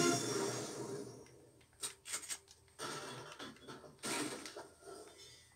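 Video game sound effects play from a television speaker.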